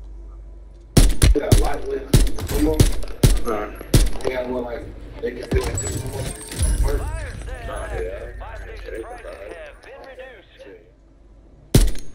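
A rifle fires sharp shots in quick succession.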